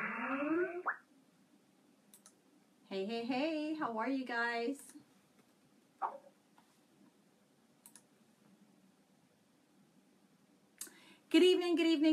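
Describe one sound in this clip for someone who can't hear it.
A woman speaks with animation, close to a microphone, in short bursts.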